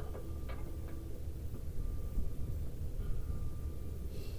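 Metal parts click and tap softly as a brake caliper is handled.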